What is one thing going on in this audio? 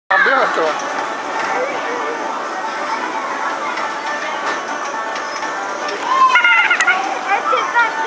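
Children shout and squeal nearby.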